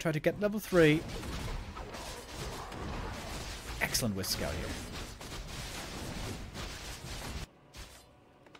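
Weapons clash and spells burst in a game battle.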